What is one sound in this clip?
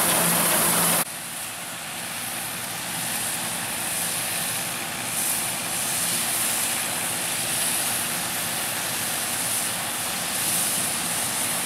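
A tractor engine chugs as it pulls a harvester through a field.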